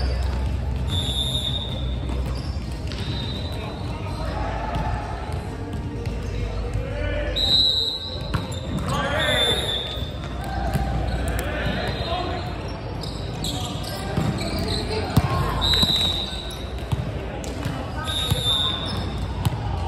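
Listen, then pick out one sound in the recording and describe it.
Sneakers squeak sharply on a hard court floor in a large echoing hall.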